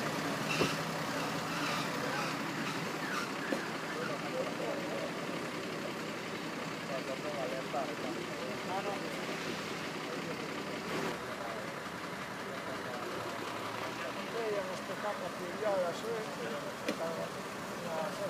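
Men talk in the distance outdoors.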